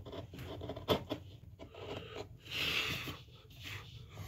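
A chisel scrapes and pares wood.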